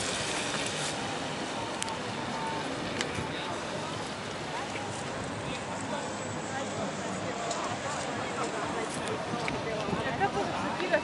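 Distant city traffic hums steadily.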